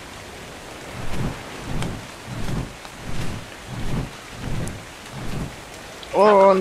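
A large creature's heavy footsteps thud steadily on the ground.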